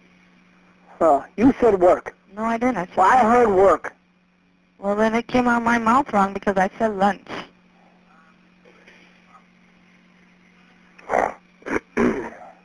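A woman talks over a phone line.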